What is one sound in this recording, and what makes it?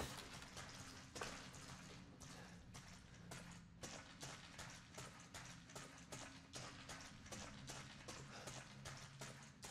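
Footsteps crunch steadily on rocky ground.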